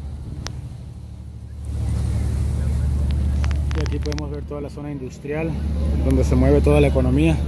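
Wind rumbles across the microphone on open water.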